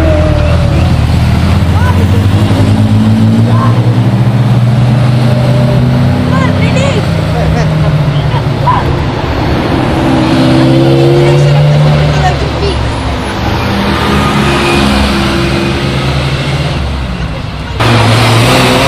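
Ferrari V8 sports cars accelerate away one after another, engines revving hard.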